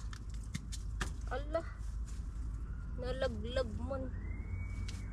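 A young woman speaks briefly and animatedly close by.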